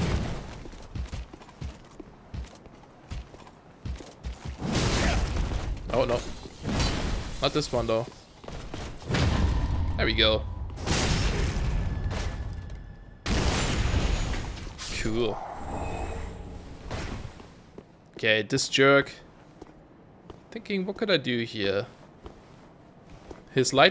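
Armoured footsteps scrape across stone.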